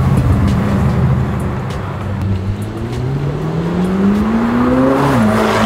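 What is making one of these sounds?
City traffic hums in the background.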